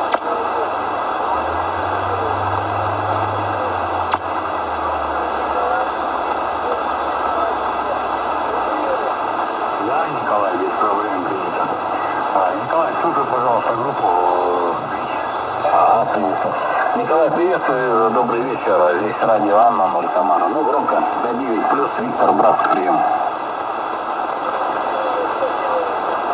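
A shortwave radio hisses with steady static.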